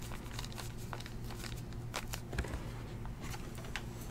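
Trading cards rustle and click in a hand.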